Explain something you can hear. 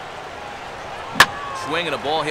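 A ball smacks sharply into a catcher's mitt.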